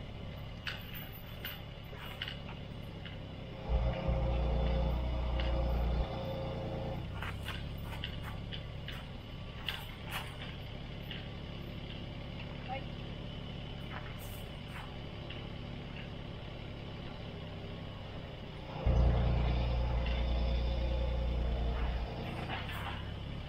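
A small excavator engine runs steadily nearby.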